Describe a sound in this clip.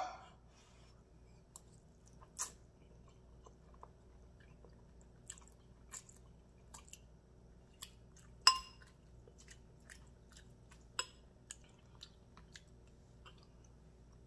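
A woman slurps noodles.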